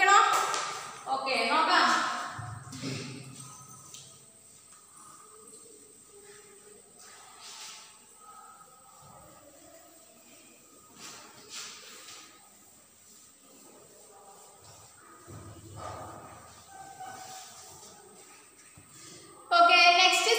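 A woman speaks clearly into a nearby microphone.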